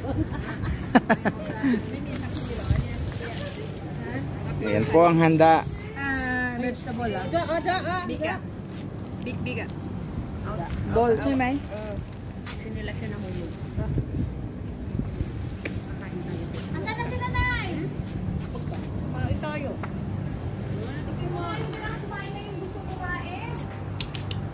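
Women and men talk casually nearby, outdoors.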